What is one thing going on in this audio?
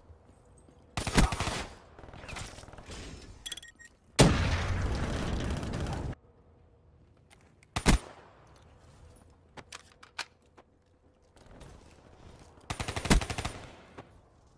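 Gunshots crack sharply a few times, with a short echo.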